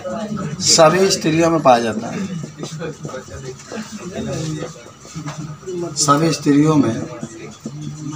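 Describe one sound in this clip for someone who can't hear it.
A man speaks calmly close by, explaining.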